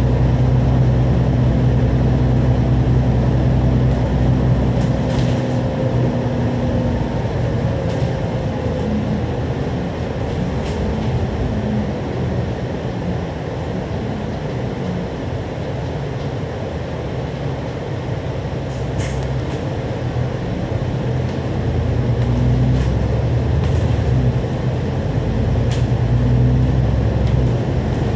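A diesel double-decker bus engine drones from on board, easing off for lights and pulling away again.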